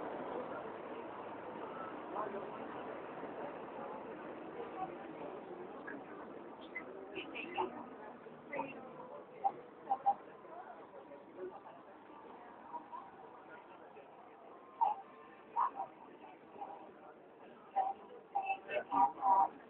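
A crowd of women and girls chatter and talk loudly close by.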